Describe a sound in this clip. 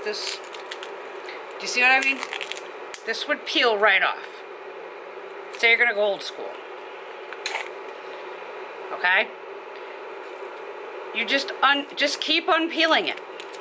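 Thin cardboard crinkles and taps as hands fold and handle a small box.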